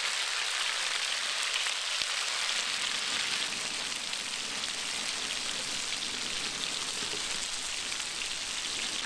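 Meat sizzles loudly on a hot pan.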